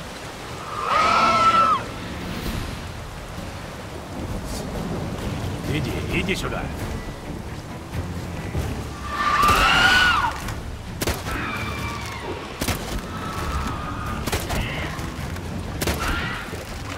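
Rain falls and waves churn in a stormy wind.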